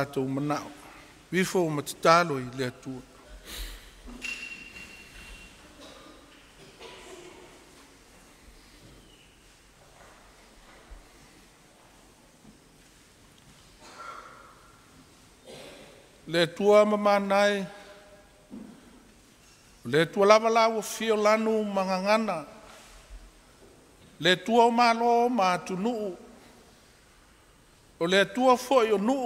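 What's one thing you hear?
An elderly man speaks slowly and solemnly into a microphone, with long pauses.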